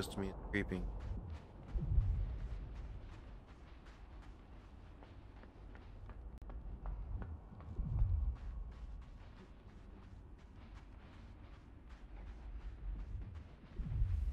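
Quick footsteps patter steadily as a small figure runs.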